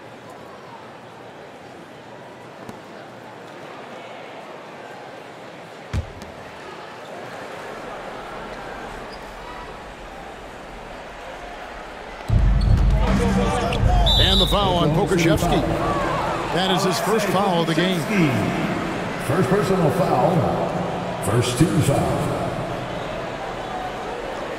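A large crowd murmurs steadily in an arena.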